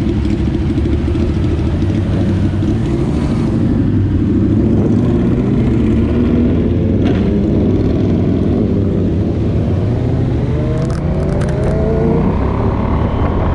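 A motorcycle engine rumbles up close and revs as it pulls away.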